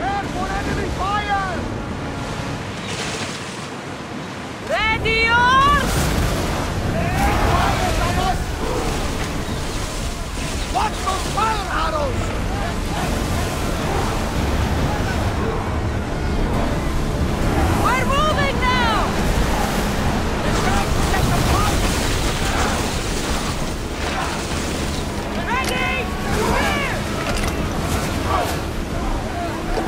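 Rough sea waves rush and splash against a ship's hull.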